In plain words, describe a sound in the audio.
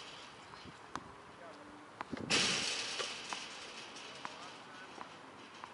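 A tennis ball is hit with a racket in the distance.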